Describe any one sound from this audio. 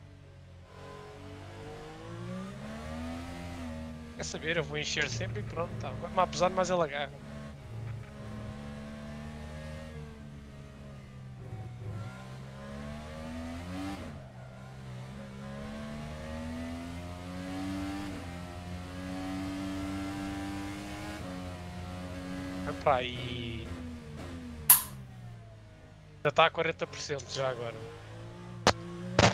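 An open-wheel racing car engine revs up and down through the gears.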